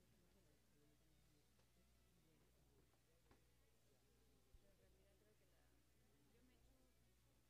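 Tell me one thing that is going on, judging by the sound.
A crowd of adults murmurs and chats quietly in a room.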